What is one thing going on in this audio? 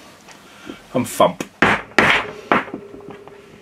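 A mallet taps on a tool against leather.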